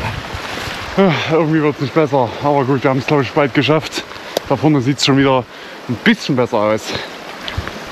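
A young man talks calmly close by.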